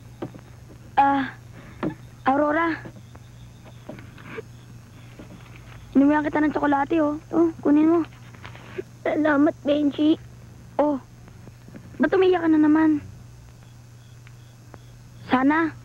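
A young girl speaks softly, close by.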